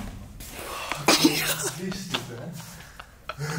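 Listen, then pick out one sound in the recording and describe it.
A young man laughs loudly close by.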